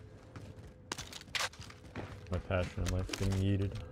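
A rifle clicks and clatters as it is handled.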